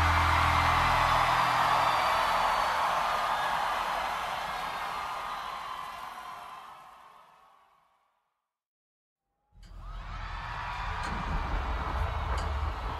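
An electric bass plays.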